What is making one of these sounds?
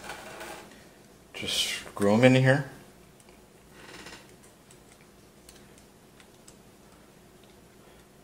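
A metal drive clicks and scrapes against a metal frame.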